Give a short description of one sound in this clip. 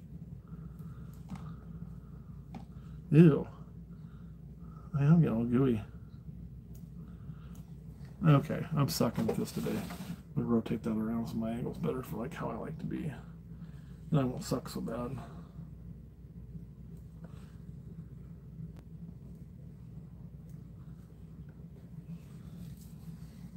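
Hands rustle and scrape through loose, gritty bedding.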